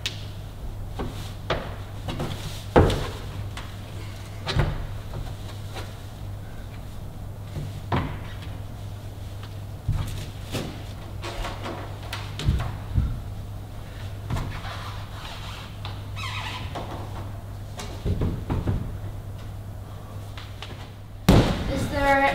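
Hands and feet knock against climbing holds on a wall.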